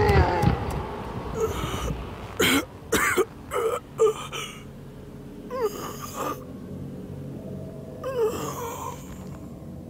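An elderly man mutters and grumbles.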